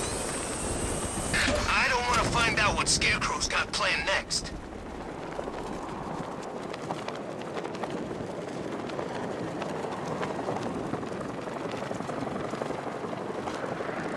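Wind rushes steadily past during a glide through the air.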